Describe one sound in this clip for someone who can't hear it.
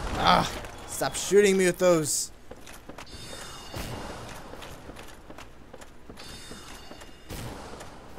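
Armoured footsteps clank on wooden stairs.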